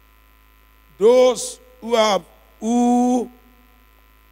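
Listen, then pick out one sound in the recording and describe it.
A man speaks loudly and with passion into a microphone, in short drawn-out bursts.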